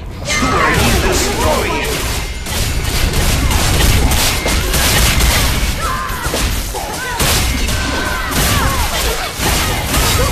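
Magic blasts burst with loud whooshes.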